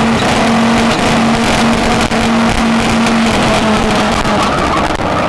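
Car engines idle loudly and rev at a starting line outdoors.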